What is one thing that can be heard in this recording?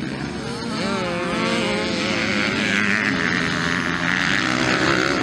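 Dirt bike engines rev and whine loudly as the motorcycles race past.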